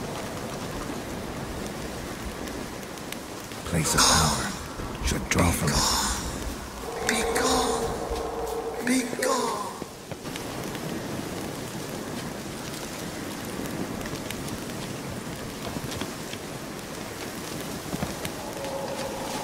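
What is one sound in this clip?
Footsteps tread softly through grass and undergrowth.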